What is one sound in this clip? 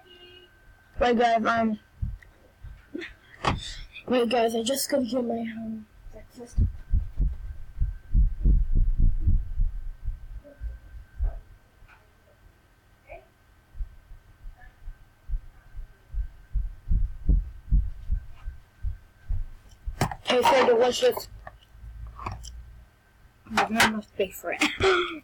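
A young boy speaks close to a microphone.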